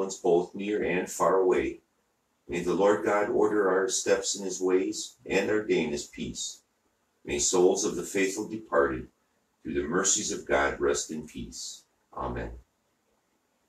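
An elderly man reads aloud in a steady chant, close by.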